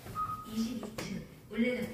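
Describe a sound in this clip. A lift button beeps when pressed.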